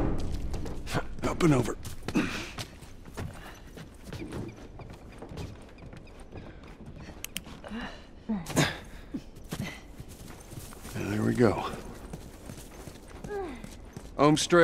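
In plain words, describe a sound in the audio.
Footsteps thud on wooden boards and gravel.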